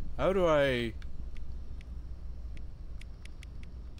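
A game menu gives soft electronic clicks.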